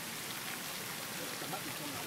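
A fountain splashes into water.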